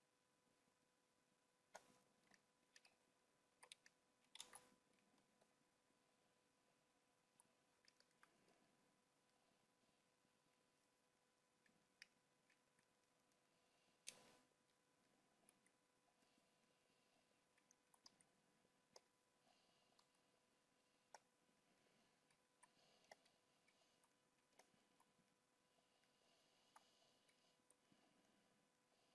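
A man talks calmly and quietly into a close microphone.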